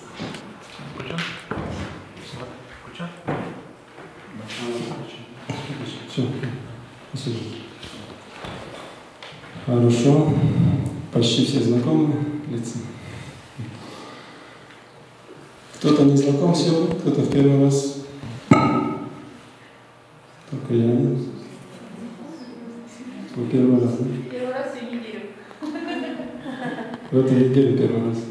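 A man speaks calmly into a microphone through a loudspeaker in an echoing room.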